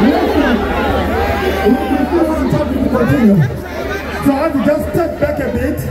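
A large crowd sings along loudly outdoors.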